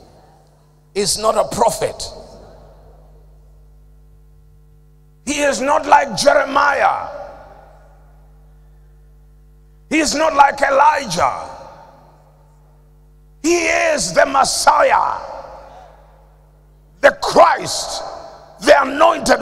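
A middle-aged man preaches with animation into a microphone, in bursts with pauses, in an echoing hall.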